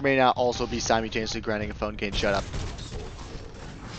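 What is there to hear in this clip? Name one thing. Heavy gunfire rattles rapidly.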